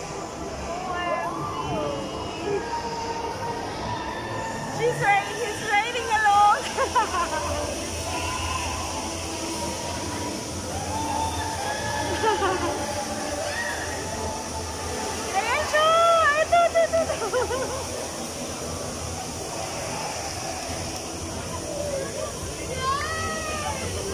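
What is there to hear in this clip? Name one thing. A fairground ride rumbles and whirs steadily.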